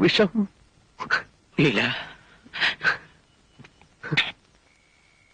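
A middle-aged man speaks close by in a choked, tearful voice.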